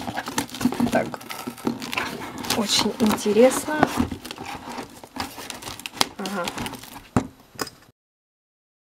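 Plastic wrapping and cardboard rustle as hands rummage through a box.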